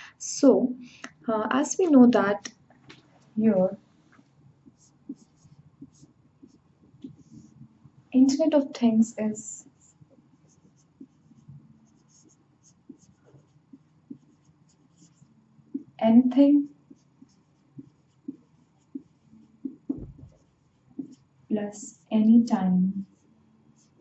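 A young woman speaks calmly and clearly into a nearby microphone, in short bursts.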